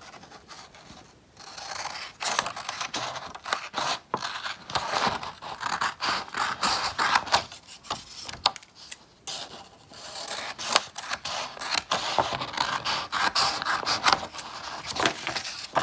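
Scissors snip through stiff paper.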